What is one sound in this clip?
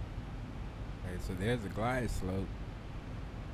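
A man speaks briefly and with animation into a headset microphone.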